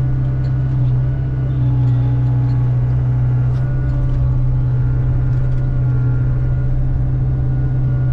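A hydraulic grapple whines as it swings and lifts.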